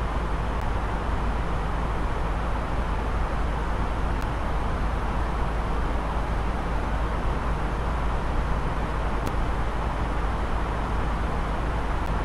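A steady, low roar of jet engines and rushing air fills a cockpit in flight.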